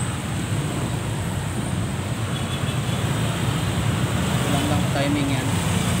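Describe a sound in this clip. Motorcycle engines run close by.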